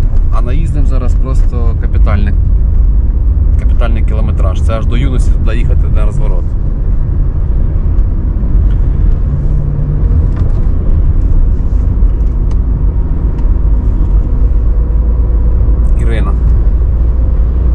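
A car engine hums steadily at low pitch.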